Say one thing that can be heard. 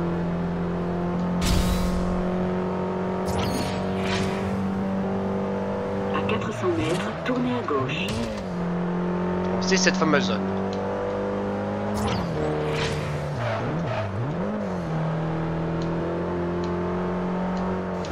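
A racing car engine roars steadily at high speed, its pitch dipping and rising with gear changes.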